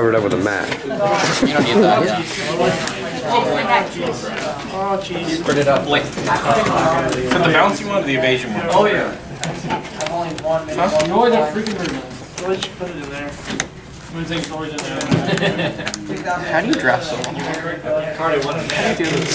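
A young man talks steadily and calmly close by.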